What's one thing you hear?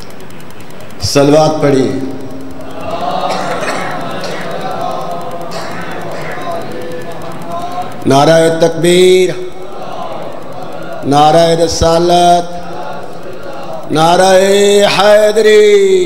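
A middle-aged man chants with feeling into a microphone, heard through loudspeakers.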